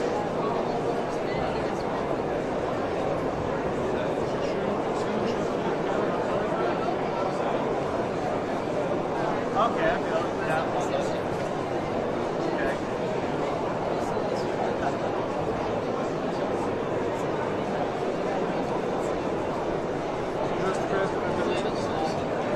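A young man talks with another man nearby.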